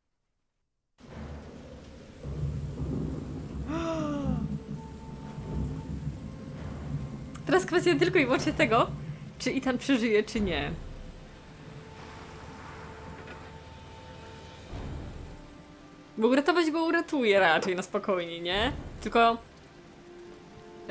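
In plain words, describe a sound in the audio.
Rain pours steadily.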